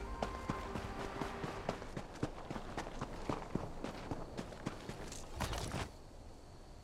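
Footsteps crunch on grass and dirt at a steady pace.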